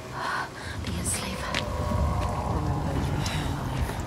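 A woman speaks in a low, tense voice.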